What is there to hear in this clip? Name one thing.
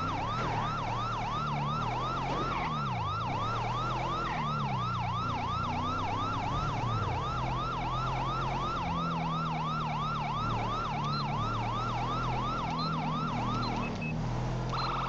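A police siren wails in fast, rising and falling yelps.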